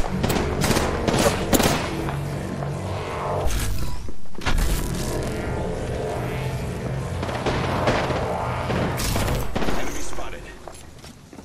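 Electric crackling buzzes and snaps.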